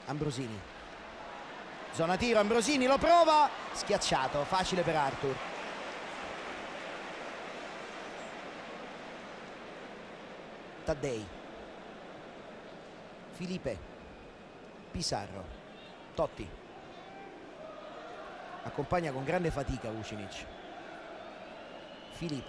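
A large stadium crowd murmurs and roars steadily in the open air.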